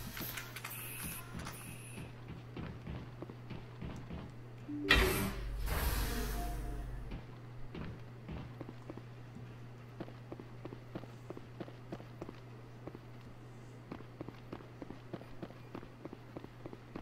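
Footsteps tap on a metal floor.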